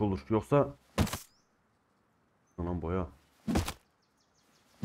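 A rock strikes a tree trunk with a dull knock.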